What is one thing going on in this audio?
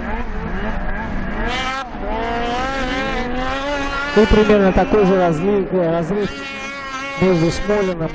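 A snowmobile engine revs and whines loudly, rising and falling in pitch as it races past.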